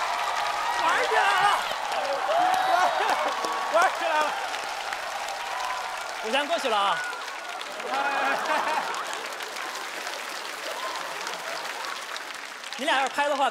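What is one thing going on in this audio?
A crowd claps and cheers loudly.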